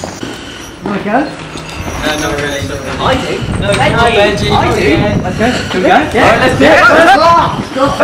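Young men talk and call out to each other close by, with rising excitement.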